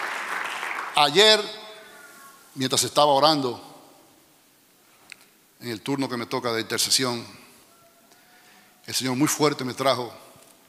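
A middle-aged man speaks into a microphone with animation, in bursts with pauses, in a reverberant hall.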